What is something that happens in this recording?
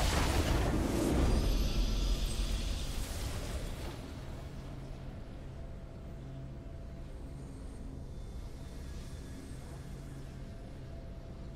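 Triumphant music swells and plays on.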